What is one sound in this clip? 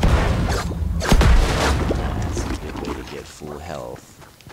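A loud magical whoosh roars and then fades away.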